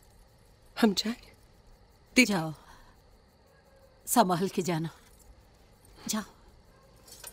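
An older woman answers with emotion, close by.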